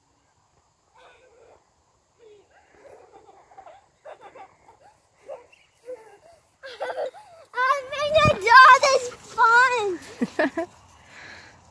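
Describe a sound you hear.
A young child talks and shouts excitedly, coming close.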